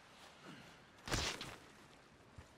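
A body lands with a heavy thud on the ground.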